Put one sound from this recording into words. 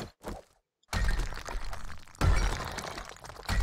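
A pickaxe strikes and breaks brick.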